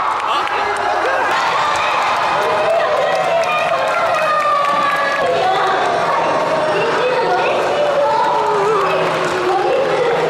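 A crowd of children and young adults cheer and shout excitedly in a large echoing hall.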